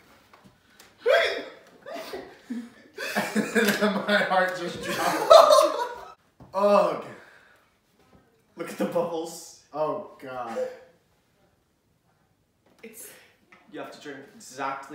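A young man laughs and talks with animation.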